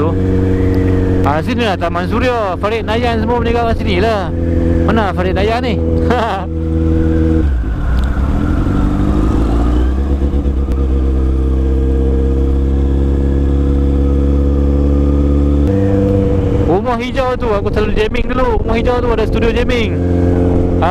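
A motorcycle engine hums steadily and revs up as the bike speeds along.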